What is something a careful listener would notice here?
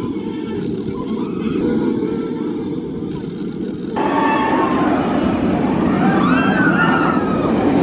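Riders scream on a roller coaster.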